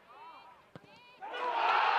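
A football is struck hard with a thud.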